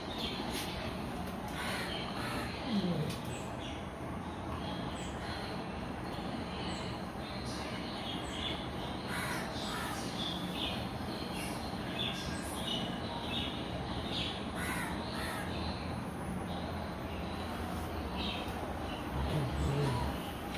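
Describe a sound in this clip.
Two dogs growl and grumble as they play-fight.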